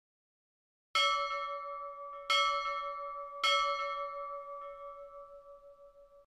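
A small bell rings three times, each ring fading slowly.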